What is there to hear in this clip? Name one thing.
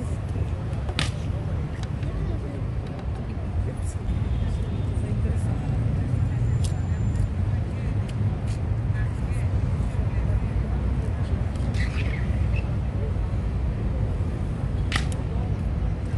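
Hobnailed ceremonial clogs stamp and clack on a stone pavement.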